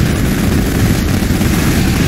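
A rocket whooshes as it is fired.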